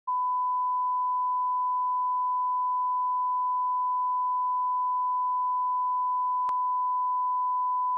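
A steady high-pitched test tone sounds.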